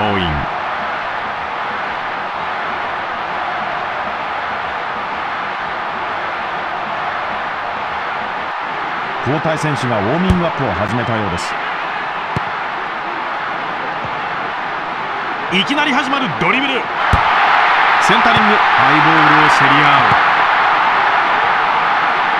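A stadium crowd roars steadily, swelling louder near the end.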